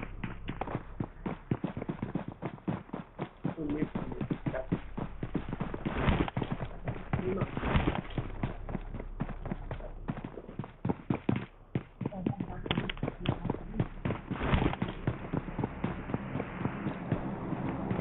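Footsteps thud quickly over ground and wooden floorboards.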